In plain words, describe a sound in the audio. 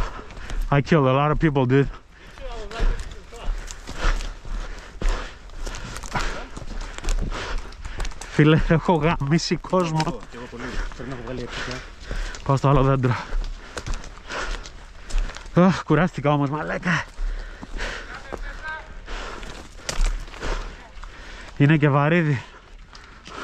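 A man speaks calmly and close to the microphone, in short bursts.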